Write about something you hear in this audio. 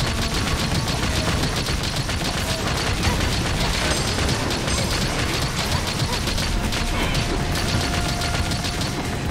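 A mounted cannon fires rapid bursts of shots.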